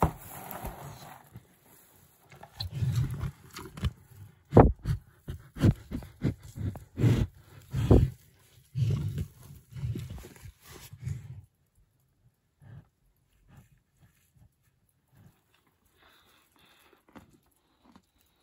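A calf munches hay close by.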